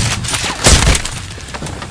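A pistol fires with sharp, loud bangs.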